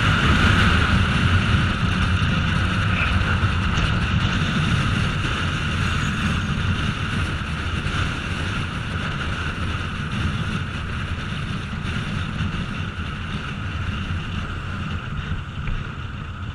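A motorcycle engine hums steadily while riding at speed.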